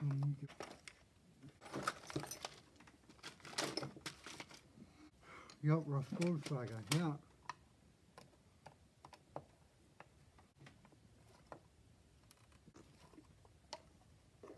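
Small metal tools click and clatter against a workbench.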